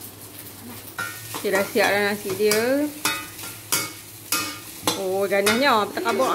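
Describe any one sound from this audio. A metal spatula scrapes and clinks against a pan.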